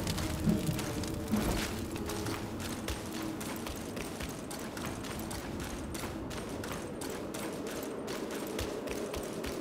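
Footsteps crunch quickly over stony ground.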